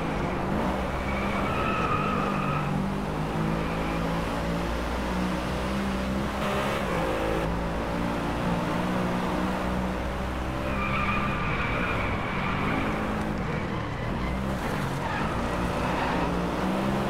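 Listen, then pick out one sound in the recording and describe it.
Tyres squeal through the corners.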